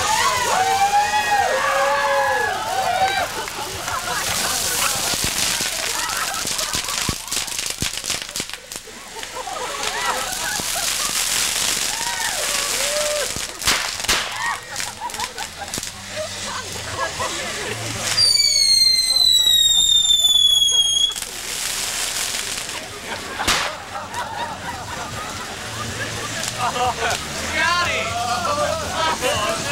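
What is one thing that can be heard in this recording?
A large fire roars and crackles outdoors.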